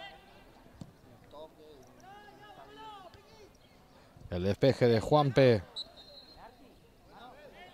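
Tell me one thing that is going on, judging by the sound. Young men shout to each other across an open playing field.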